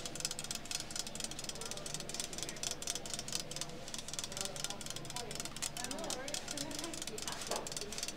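Fingernails tap lightly on glass.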